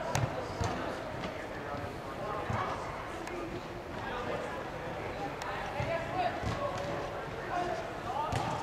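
Players shout and call out in a large echoing hall.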